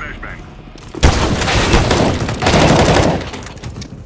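Gunshots ring out in rapid bursts.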